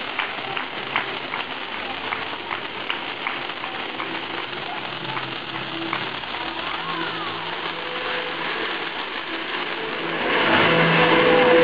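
A firework fountain hisses and crackles with sharp pops outdoors.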